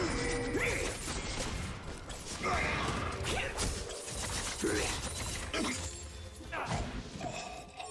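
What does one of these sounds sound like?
Video game spell effects whoosh and crackle in a fight.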